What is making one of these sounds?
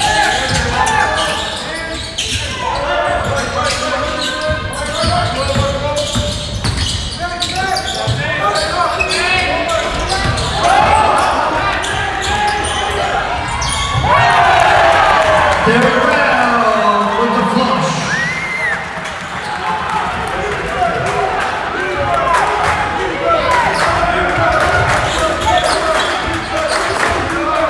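A crowd talks in the stands.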